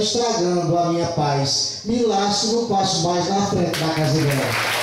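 A man speaks loudly into a microphone through loudspeakers in an echoing hall.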